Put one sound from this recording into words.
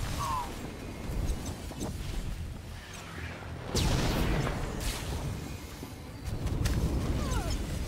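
Energy blasts crackle and zap.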